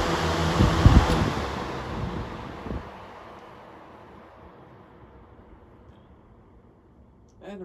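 Electric fans slowly wind down and fall quiet.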